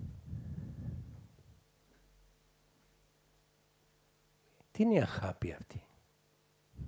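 An elderly man speaks calmly into a nearby microphone, pausing between phrases.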